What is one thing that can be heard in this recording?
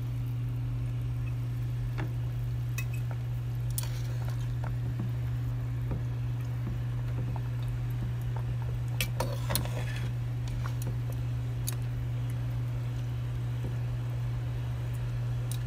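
Water simmers and bubbles in a pan.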